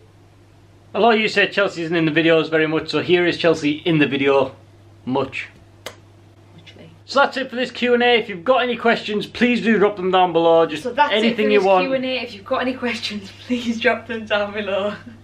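A young man talks animatedly and close by.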